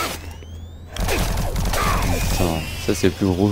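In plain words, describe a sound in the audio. Gunfire and a monster's roar burst from a video game.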